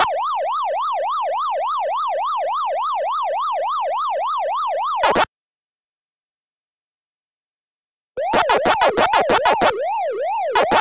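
An arcade game's siren tone wails steadily up and down.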